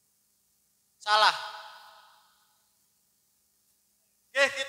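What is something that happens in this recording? A young woman calls out loudly over a loudspeaker, echoing outdoors.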